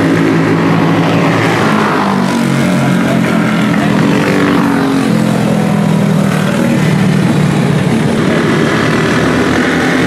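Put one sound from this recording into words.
A race car engine roars loudly as it speeds by, rising and falling in pitch.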